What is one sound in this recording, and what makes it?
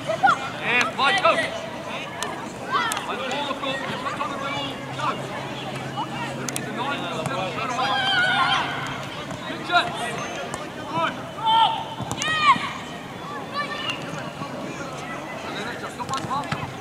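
Players shout to each other across an open outdoor field.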